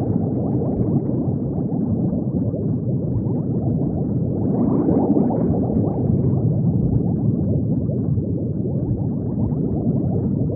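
Bubbles gurgle and burble steadily underwater.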